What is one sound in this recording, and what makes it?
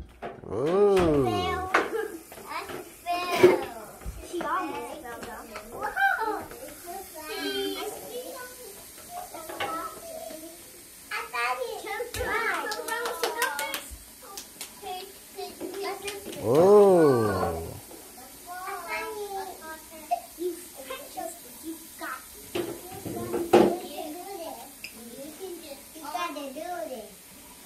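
A young child talks and calls out playfully nearby.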